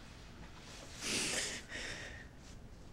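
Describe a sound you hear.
A young woman sobs close by.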